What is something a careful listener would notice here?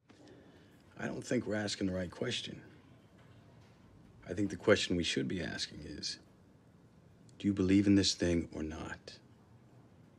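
A man speaks calmly and casually, close by.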